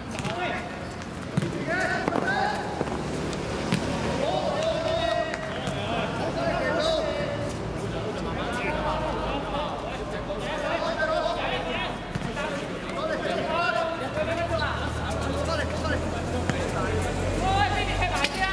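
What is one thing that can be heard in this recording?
Young men shout and call to each other across an outdoor court.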